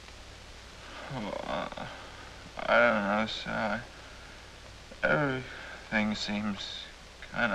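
A second man speaks in a low, earnest voice.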